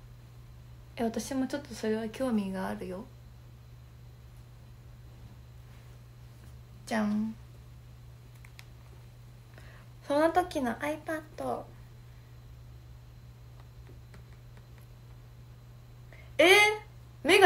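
A young woman talks calmly and close by, in short bursts.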